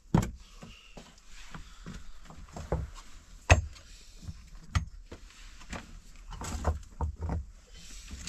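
Hands scrape and knock at loose stones close by.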